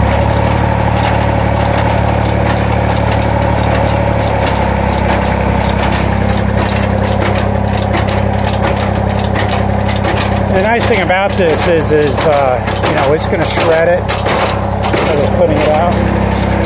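A tractor engine idles and hums steadily close by.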